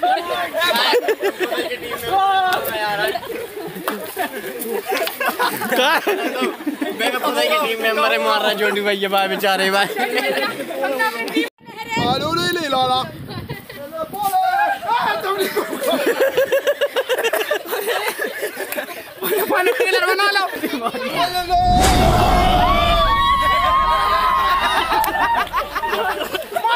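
Young men shout and laugh with excitement outdoors.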